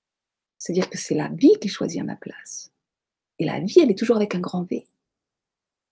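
A middle-aged woman talks calmly and closely into a microphone, as if on an online call.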